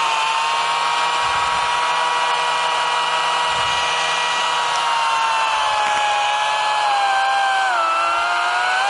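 A brush cutter engine whines steadily close by, its pitch dipping slightly near the end.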